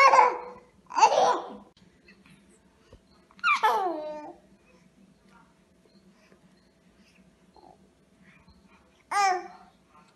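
A young child squeals and babbles close by.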